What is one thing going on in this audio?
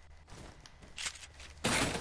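Wooden walls are built with quick clattering thuds.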